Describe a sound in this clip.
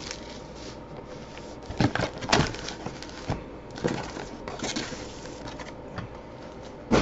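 Foil card packs rustle as they are handled.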